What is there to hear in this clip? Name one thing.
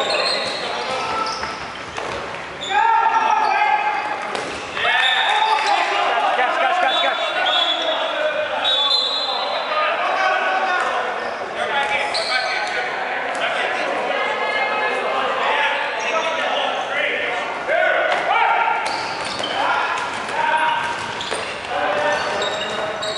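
Young men and women shout and call out in a large echoing hall.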